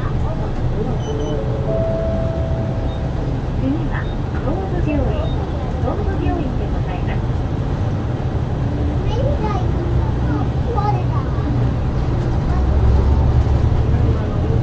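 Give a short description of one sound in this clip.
A bus engine rumbles low and steady as the bus drives along.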